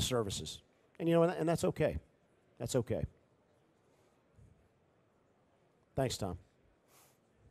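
An older man speaks to an audience through a microphone, with pauses.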